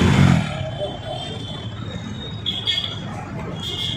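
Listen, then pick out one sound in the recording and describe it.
A motorbike engine runs nearby.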